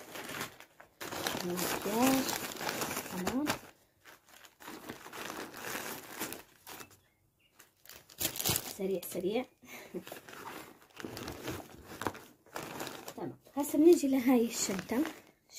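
Fabric bags rustle as they are packed into a suitcase.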